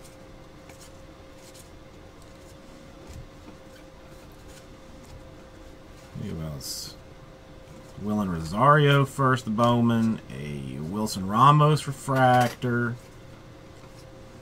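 Trading cards rustle and click softly as hands sort through them.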